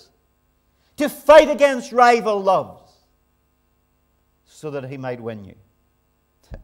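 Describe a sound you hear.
A man speaks into a microphone in a calm, lively voice.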